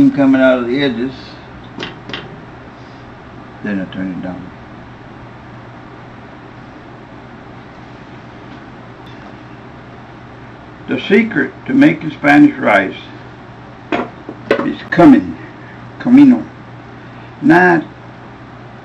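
A man talks calmly and close by.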